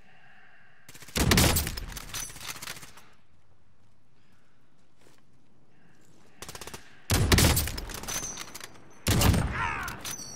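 A rifle fires loud, booming shots that echo away.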